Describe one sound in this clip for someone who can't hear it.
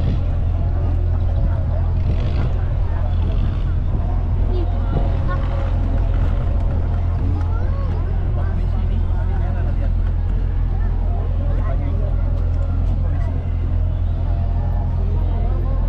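A crowd of adults and children chatters nearby.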